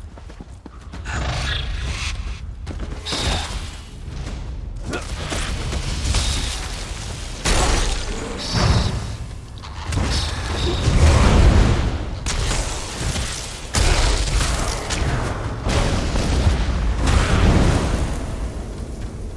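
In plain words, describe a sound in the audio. Spell blasts and weapon strikes crash and whoosh in a fight.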